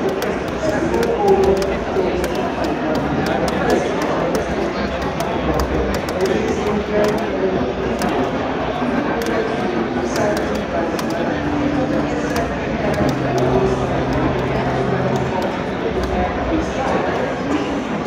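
Sharp hit sounds crack in quick bursts.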